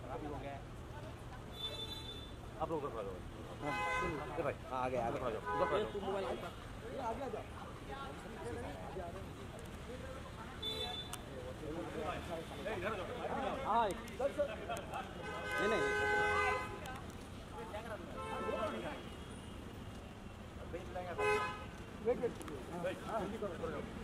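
Several men call out and talk loudly nearby, outdoors.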